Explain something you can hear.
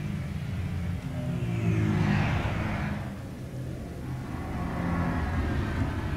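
A huge airship hovers overhead with a deep, rumbling engine drone.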